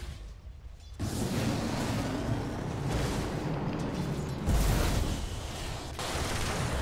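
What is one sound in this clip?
A fiery beam roars across a lane.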